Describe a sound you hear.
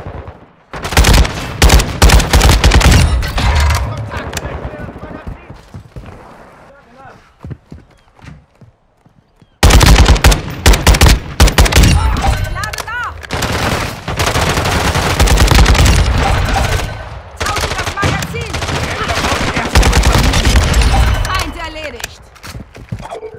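Automatic rifle fire rattles in rapid bursts with heavy booming shots.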